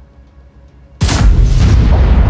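A tank's large-calibre cannon fires with a heavy boom.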